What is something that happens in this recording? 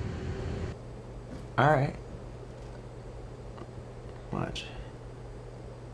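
A young man speaks quietly, close to a computer microphone.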